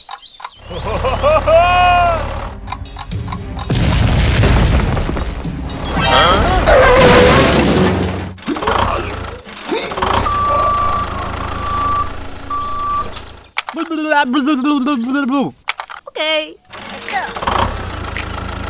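A toy tractor engine rumbles.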